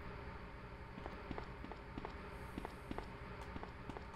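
Footsteps click on a hard floor at a steady pace.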